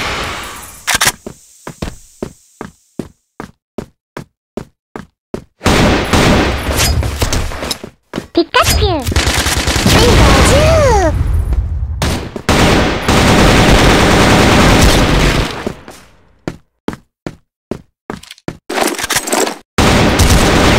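Rifle shots fire in rapid bursts with sharp cracks.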